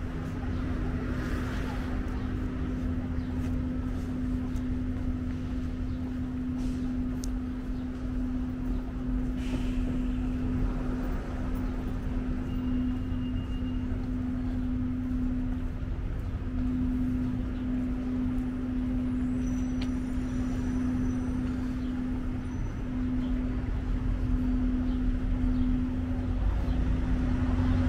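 Street traffic rumbles steadily nearby outdoors.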